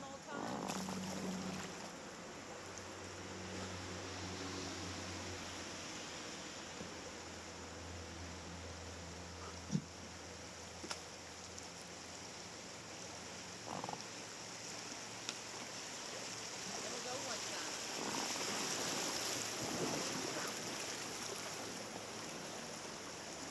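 Paddles dip and splash in the water.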